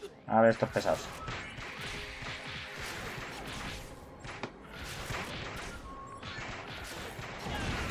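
Magic blasts and whooshes of a fight ring out.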